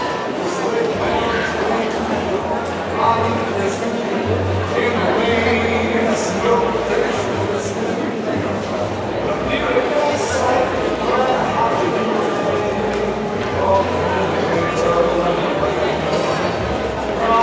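A band plays music on stage in a large hall.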